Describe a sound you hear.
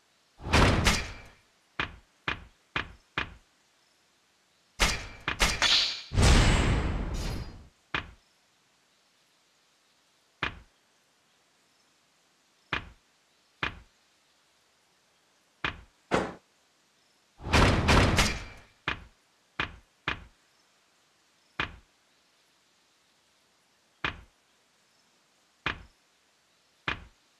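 Short game menu clicks sound again and again as selections move.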